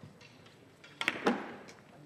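A cue strikes a billiard ball with a sharp knock.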